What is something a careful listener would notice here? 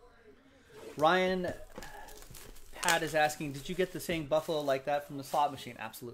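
Plastic wrap crinkles as it is torn off a box.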